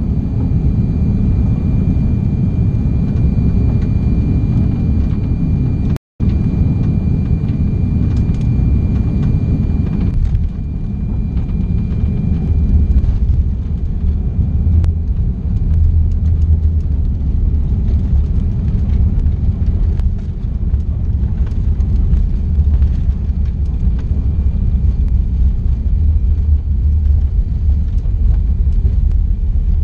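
A jet engine roars steadily, heard from inside a plane cabin.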